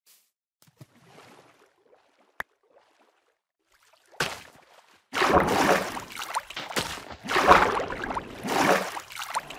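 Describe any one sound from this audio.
Water splashes and gurgles as a swimmer moves through it.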